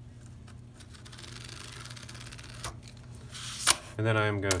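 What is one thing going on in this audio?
A marker squeaks as it draws a line on cardboard.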